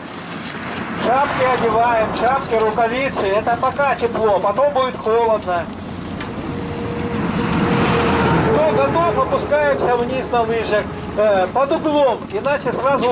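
A group of young people talk and call out loudly nearby, outdoors.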